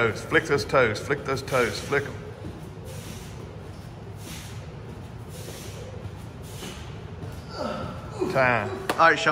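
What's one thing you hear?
Feet thud softly on a mat with each jump.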